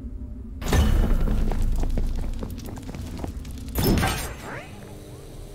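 Video game combat effects crash and whoosh loudly.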